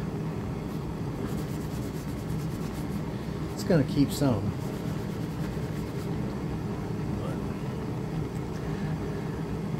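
A cloth rubs and wipes across a rough surface.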